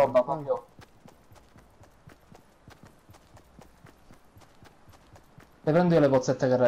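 Quick footsteps run steadily over grass.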